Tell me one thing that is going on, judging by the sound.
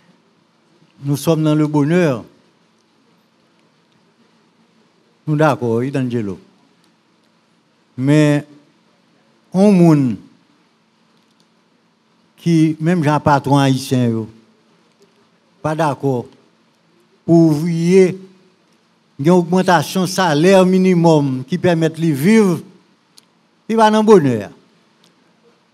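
An elderly man speaks calmly into a microphone close by, in short phrases with pauses.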